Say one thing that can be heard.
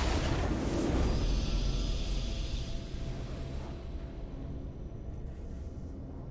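A triumphant victory fanfare swells and fades.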